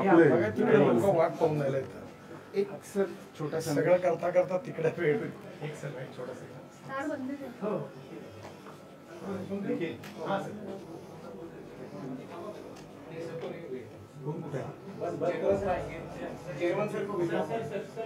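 A middle-aged man speaks calmly and explains, close by.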